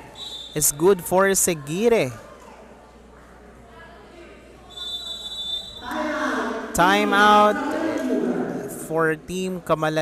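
Young women players call out loudly on the court.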